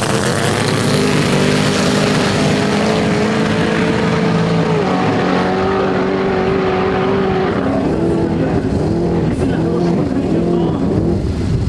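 A racing car engine roars loudly as the car speeds away and slowly fades.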